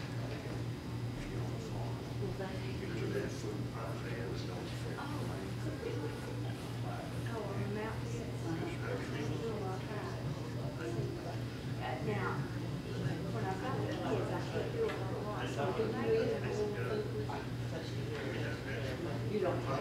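An older man speaks calmly into a microphone over a loudspeaker in an echoing hall.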